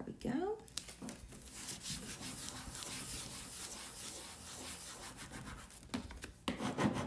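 Hands rub and smooth a sticker onto a board with a soft swishing.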